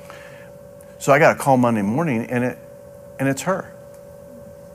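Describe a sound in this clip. A middle-aged man speaks with emphasis through a clip-on microphone.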